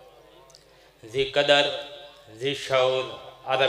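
A young man recites loudly and with strong feeling through a microphone, in an echoing space.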